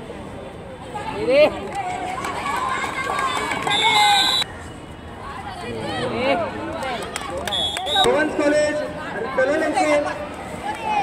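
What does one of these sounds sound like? A crowd of young people shouts and cheers excitedly outdoors.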